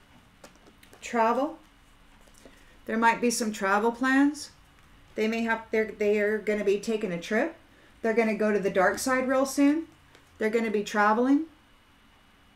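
A middle-aged woman speaks calmly and close by, in short bursts.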